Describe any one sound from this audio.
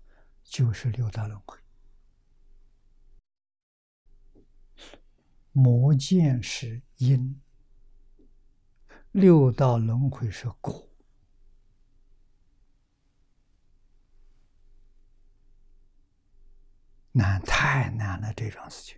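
An elderly man speaks slowly and calmly into a close microphone, with long pauses.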